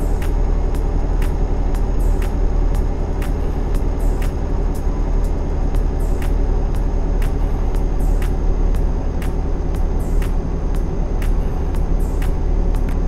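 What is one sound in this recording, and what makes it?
Tyres thump rhythmically over road joints.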